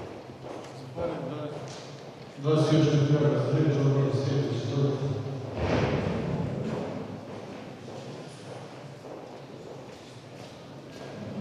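A middle-aged man speaks calmly into a microphone through loudspeakers in an echoing hall.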